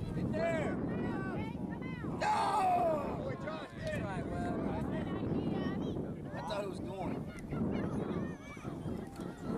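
Children shout excitedly across an open field.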